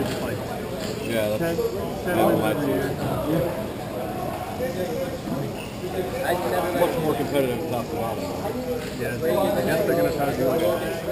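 Skate wheels roll and scrape across a hard floor in a large echoing hall.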